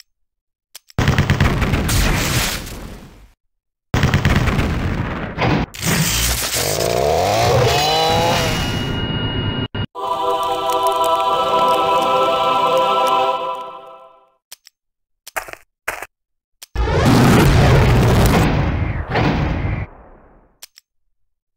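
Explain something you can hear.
Loud crashing battle effects burst and rumble in short spells.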